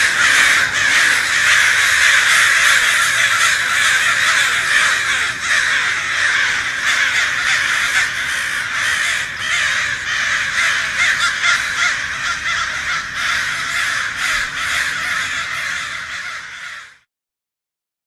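Many birds chatter and squawk loudly, echoing in a large hall.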